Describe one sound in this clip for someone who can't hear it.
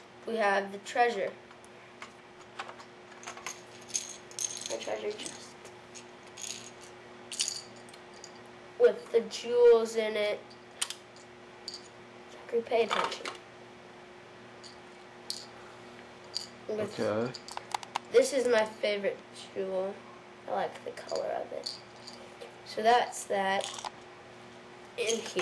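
Small plastic toy bricks click and snap together.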